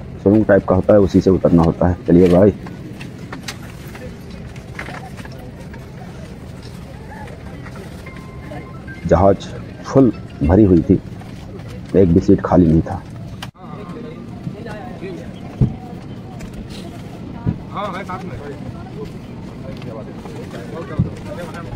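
A steady hum of an aircraft cabin runs throughout.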